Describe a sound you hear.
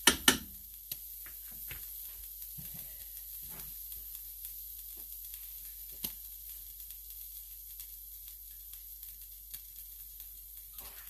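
Water simmers quietly in a pot, with faint ticks and bubbles.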